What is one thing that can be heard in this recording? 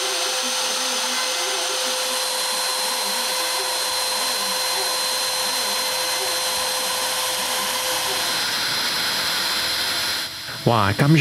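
A milling machine whines steadily as it carves wood.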